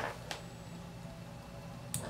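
Scissors snip a thread close by.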